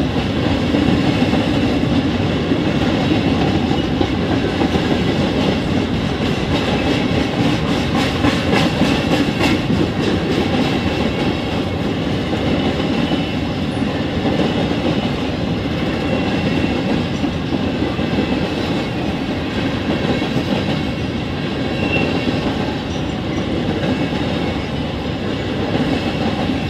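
Freight cars rumble and clatter steadily past on the rails.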